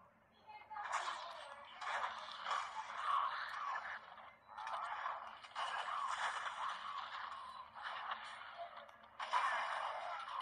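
Game battle sounds play from a small, tinny speaker in bursts.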